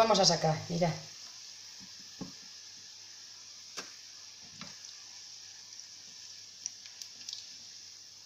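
A spatula clinks against a frying pan.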